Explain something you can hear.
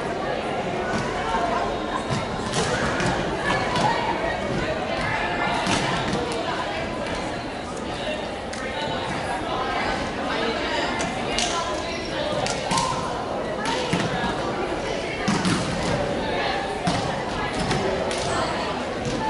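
A crowd of young women chatter and call out across a large echoing hall.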